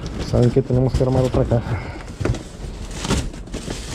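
Cardboard flaps scrape and thump as a box is pulled open.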